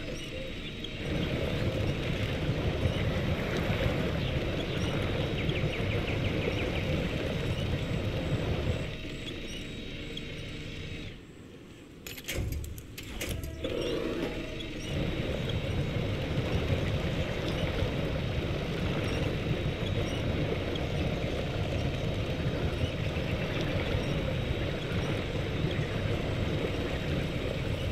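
Water splashes and churns around the truck's wheels.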